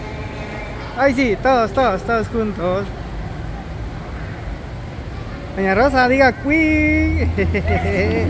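A child speaks loudly in a high voice close by.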